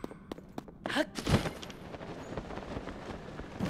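A glider snaps open with a rush of wind.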